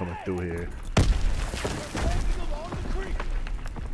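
An explosion booms loudly, then rumbles away.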